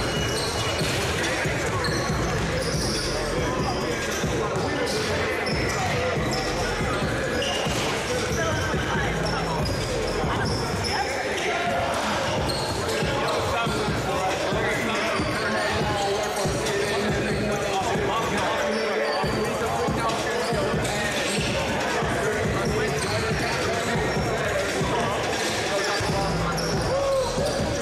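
A crowd chatters throughout a large echoing gym.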